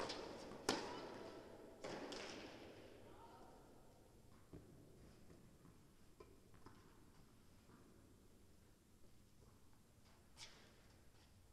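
A tennis ball is struck hard by a racket, echoing in a large hall.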